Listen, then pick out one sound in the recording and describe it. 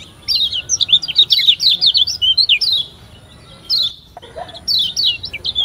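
A small bird sings quick, high chirping phrases close by.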